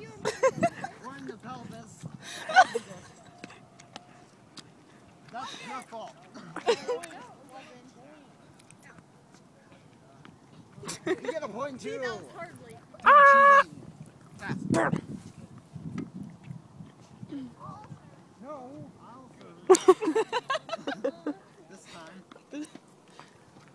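Young people talk and laugh nearby outdoors.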